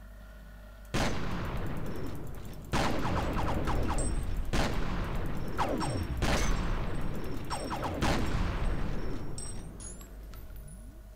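Gunshots and explosions boom loudly.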